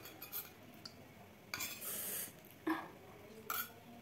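A spoon clinks against a metal bowl.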